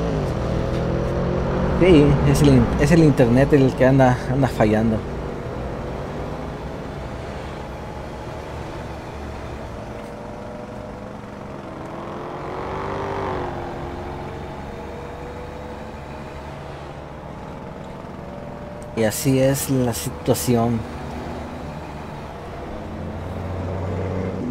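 A truck engine drones steadily as it drives.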